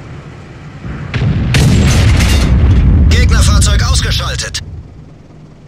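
A tank cannon fires with a loud, booming blast.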